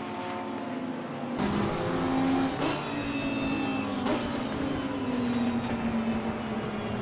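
A V10 racing car engine roars at high revs, shifting gears.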